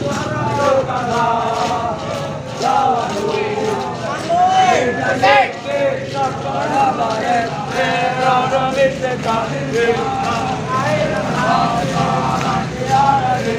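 A group of men chant in unison.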